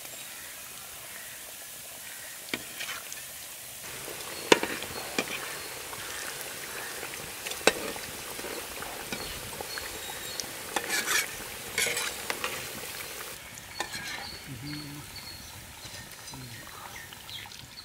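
Hot oil sizzles and bubbles steadily as food deep-fries.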